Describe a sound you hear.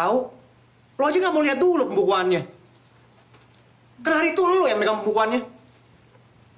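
A young woman answers tensely nearby.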